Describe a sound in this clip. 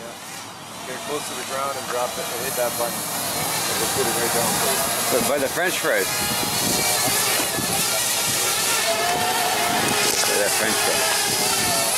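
A drone's propellers whine steadily overhead.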